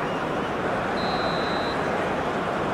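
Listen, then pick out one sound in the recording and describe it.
A referee's whistle blows once, short and shrill.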